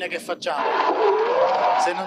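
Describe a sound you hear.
A man speaks through a microphone into a room.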